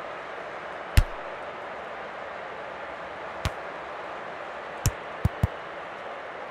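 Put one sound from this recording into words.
A football is kicked with short, sharp thuds.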